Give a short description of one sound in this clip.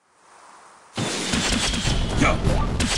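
Explosions blast loudly.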